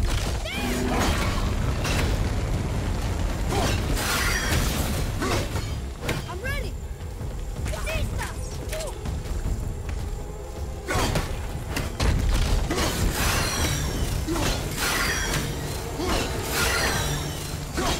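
Heavy blows strike stone with loud crashing impacts.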